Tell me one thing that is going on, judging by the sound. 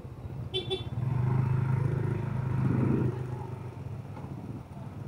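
A motorbike engine putters nearby.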